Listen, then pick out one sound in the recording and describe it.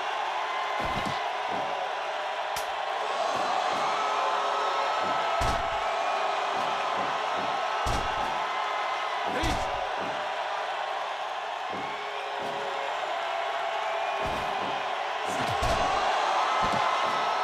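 Punches and slams thud on the ring mat.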